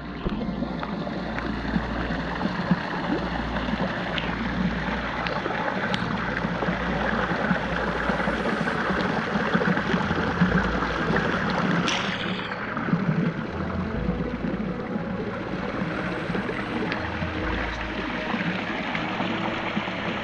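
Water laps and sloshes close by.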